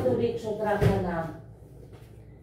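A young child speaks nearby.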